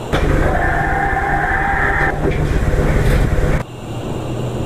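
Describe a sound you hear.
Elevator doors slide shut.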